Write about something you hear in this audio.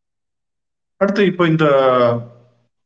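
A middle-aged man speaks over an online call.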